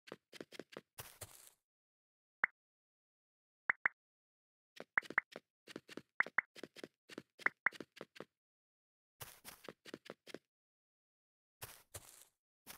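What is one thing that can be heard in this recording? Game blocks are placed with short soft thuds.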